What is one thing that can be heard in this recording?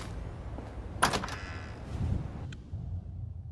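A heavy wooden door opens with a creak and a thud.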